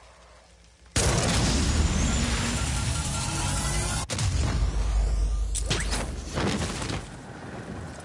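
A loud rushing whoosh bursts out and carries upward.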